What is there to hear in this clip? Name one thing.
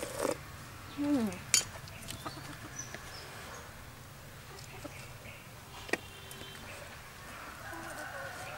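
A young woman crunches and chews crispy food up close.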